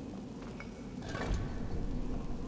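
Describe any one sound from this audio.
A heavy stone mechanism clicks and grinds.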